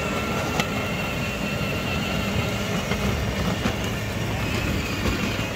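A small electric toy car whirs as it rolls over paving stones.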